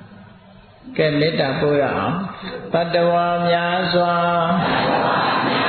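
An elderly man chants in a steady, sung voice.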